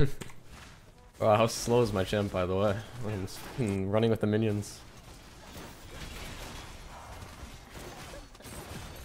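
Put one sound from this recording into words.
Spells crackle and whoosh during a fight between game characters.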